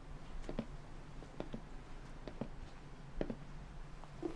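Footsteps pad slowly across a floor.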